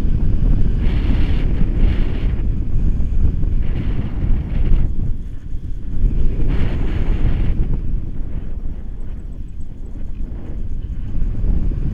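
Wind rushes and buffets loudly against the microphone, high up outdoors.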